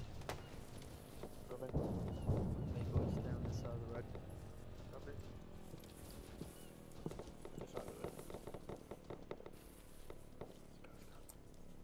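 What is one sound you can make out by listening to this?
Footsteps crunch over dry grass and gravel.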